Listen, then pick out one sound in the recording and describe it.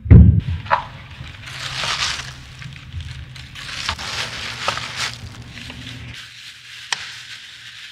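A plastic bag rustles and crinkles as hands handle it.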